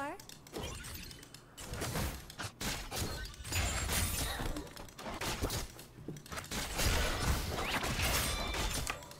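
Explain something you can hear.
Game sound effects of spells and blows crackle and clash.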